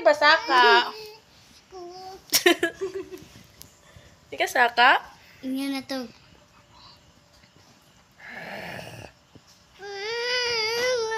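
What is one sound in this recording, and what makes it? A young woman talks playfully in a high, sing-song voice close by.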